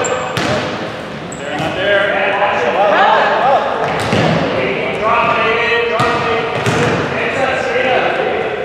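Young women shout and call out to each other in a large echoing gym.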